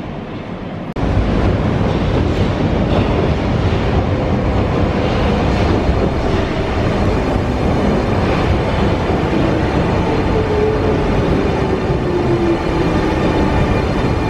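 A metro train rolls into a station with a deep rumble.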